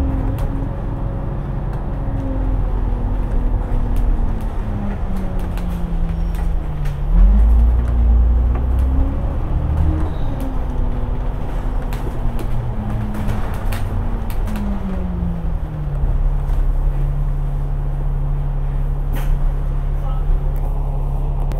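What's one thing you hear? A bus engine hums and rises and falls in pitch as the bus drives.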